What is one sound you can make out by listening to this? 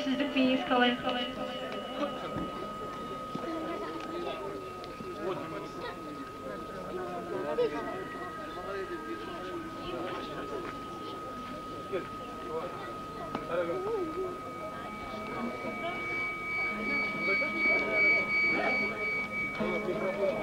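A crowd murmurs softly outdoors.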